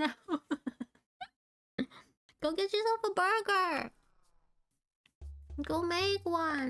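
A young woman speaks with animation into a microphone, in a high, playful voice.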